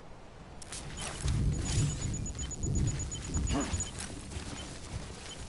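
Boots crunch on rocky ground with heavy footsteps.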